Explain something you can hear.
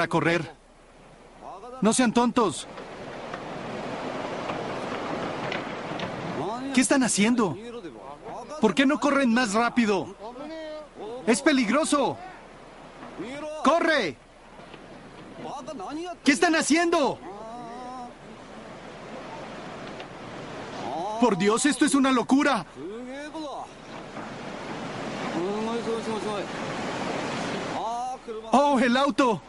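Rushing floodwater roars steadily.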